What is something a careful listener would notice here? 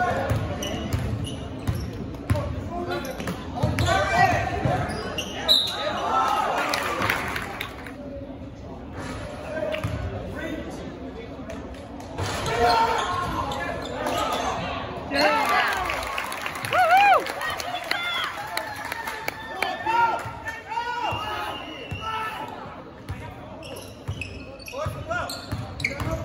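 A crowd of spectators cheers and talks in an echoing gym.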